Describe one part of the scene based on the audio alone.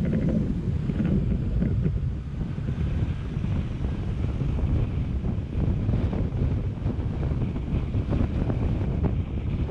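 Tyres roll on pavement.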